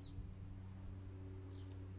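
A golf club swishes and strikes a ball.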